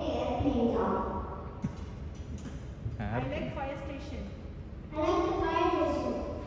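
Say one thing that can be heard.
A young child speaks into a microphone.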